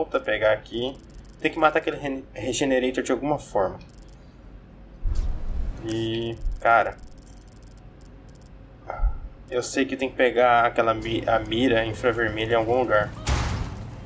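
A young man talks with animation into a headset microphone, close up.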